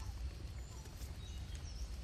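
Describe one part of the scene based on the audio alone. Dry leaves rustle as a small monkey moves over them.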